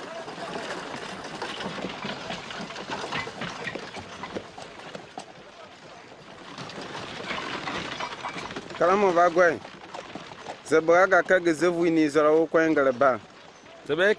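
A wooden cart creaks and rattles as it rolls.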